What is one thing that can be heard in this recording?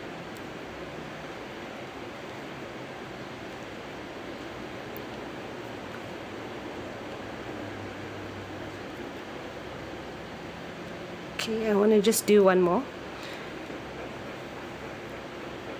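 A crochet hook softly rasps through yarn.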